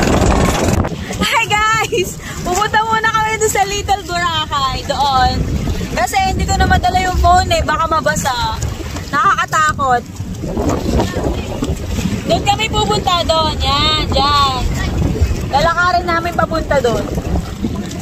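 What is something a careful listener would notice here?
A woman speaks with animation close to the microphone.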